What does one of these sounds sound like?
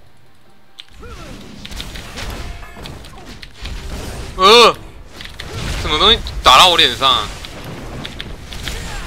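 Game spell effects and blows clash and whoosh.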